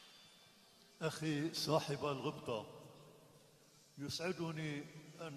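An elderly man chants through a microphone.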